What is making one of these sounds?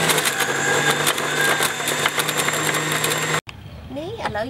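A juicer motor whirs loudly and grinds.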